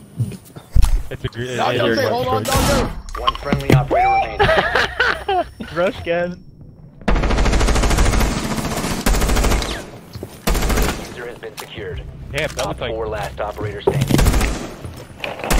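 Gunshots ring out in short bursts.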